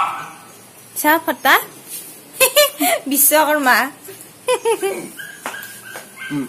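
A small dog yelps and whines close by.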